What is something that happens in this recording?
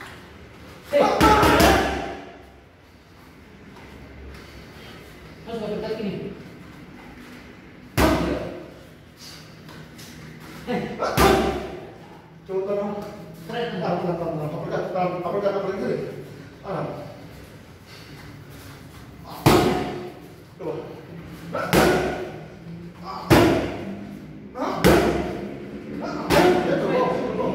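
Gloved punches smack sharply against pads.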